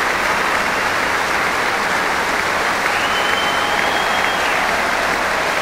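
A large crowd applauds in a large indoor arena.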